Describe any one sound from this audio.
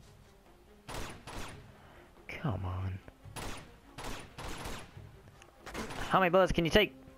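Pistol shots ring out in quick succession.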